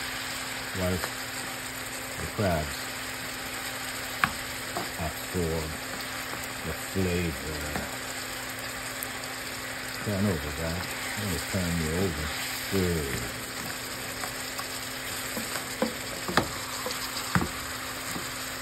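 Broth bubbles and simmers steadily in a pan.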